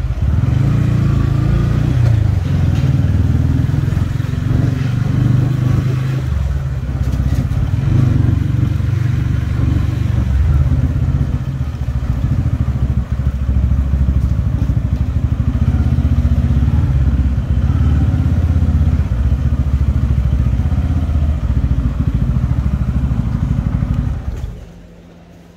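A motorcycle engine rumbles steadily up close, then cuts off.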